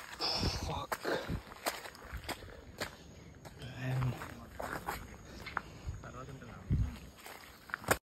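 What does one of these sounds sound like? Footsteps crunch on a gravel path.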